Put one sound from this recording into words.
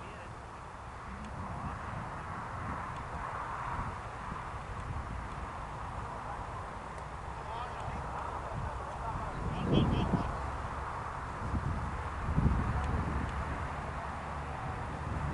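Wind blusters outdoors, gusting now and then.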